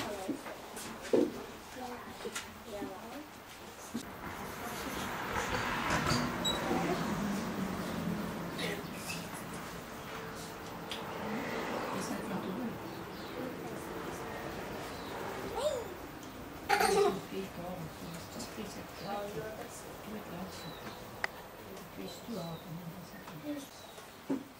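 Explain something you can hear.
Children chatter nearby.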